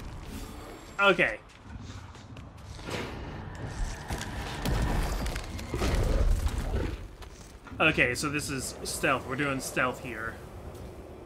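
A huge creature roars and shrieks.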